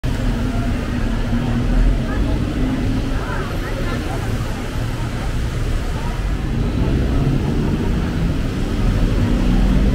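Heavy city traffic rumbles steadily below.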